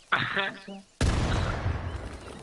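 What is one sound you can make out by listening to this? An explosion booms loudly and rumbles away.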